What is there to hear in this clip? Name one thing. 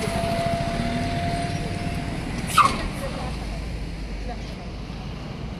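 A car drives past close by, its engine rumbling and fading away.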